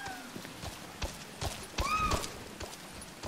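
Heavy footsteps thud as a large bird runs up.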